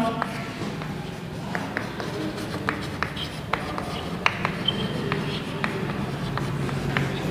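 Chalk taps and scrapes on a blackboard.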